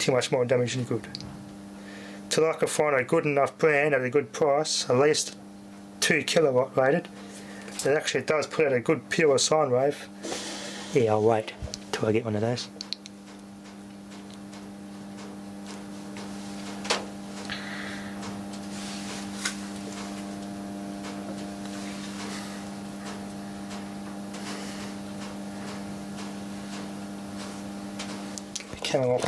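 An electric meter hums steadily.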